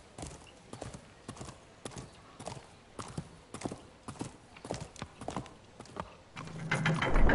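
A horse's hooves clop slowly and evenly.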